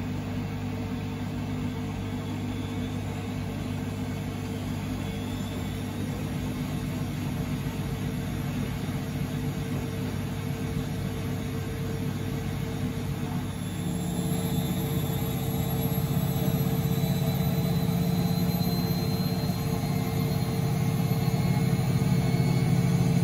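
A washing machine drum spins with a steady motor hum.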